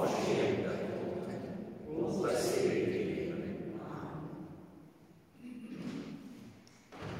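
A man speaks slowly and solemnly through a microphone in a large echoing church.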